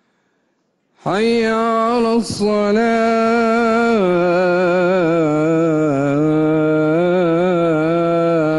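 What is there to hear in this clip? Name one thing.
A man chants a long, slow melodic call through loudspeakers, echoing widely.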